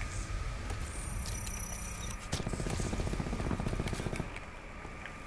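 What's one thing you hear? A medical syringe clicks and hisses as it is used.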